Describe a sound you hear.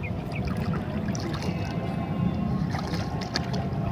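A man wades through shallow water with splashing steps.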